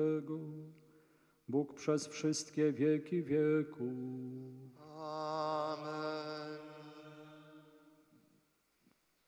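A man chants a prayer in a sung voice through a microphone, echoing in a large hall.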